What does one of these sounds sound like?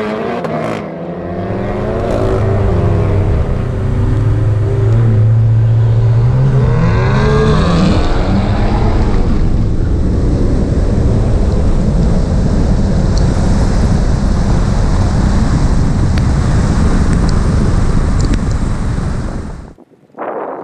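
Wind rumbles loudly past the car.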